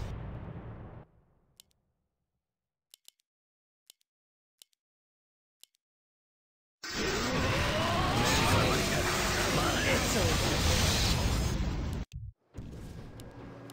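Magical blasts crackle and whoosh during a fight.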